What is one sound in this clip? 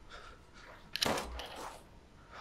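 A pistol fires a single sharp shot.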